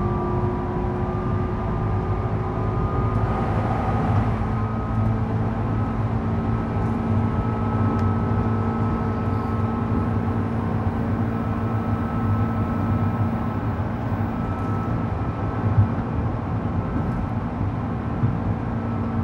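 A train rumbles steadily along the tracks, with a low hum and a whining motor.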